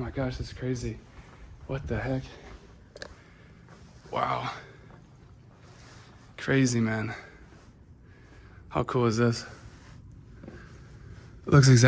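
A young man talks close to the microphone in short bursts, with pauses.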